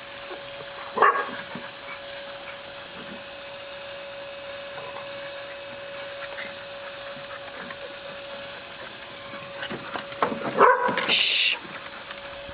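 Dogs growl and bark in short bursts while playing.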